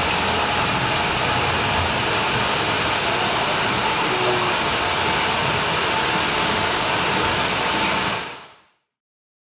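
A gas torch flame roars steadily.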